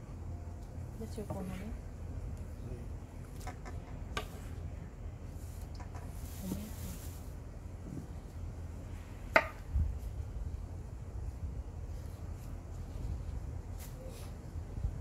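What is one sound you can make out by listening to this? A knife taps on a cutting board as tomatoes are chopped.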